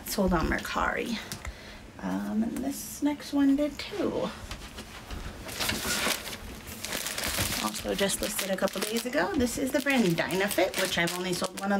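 Paper and fabric rustle in a woman's hands.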